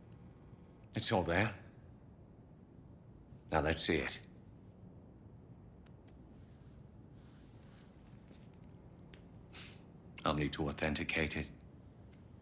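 A man speaks calmly in short lines.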